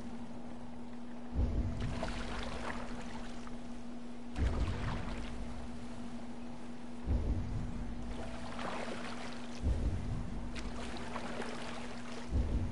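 Water laps and swirls steadily around a small boat.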